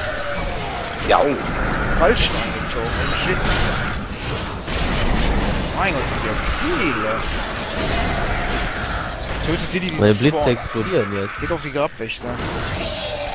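Monsters screech and growl.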